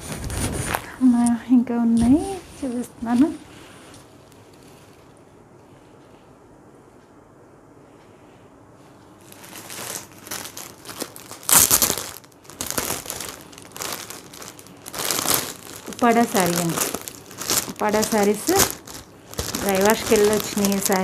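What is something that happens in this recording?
A woman speaks calmly and close by, muffled by a mask.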